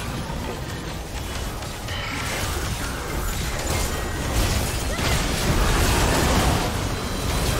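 Game spell effects whoosh, crackle and clash in a busy battle.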